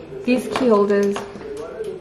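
Keys jingle on a hook.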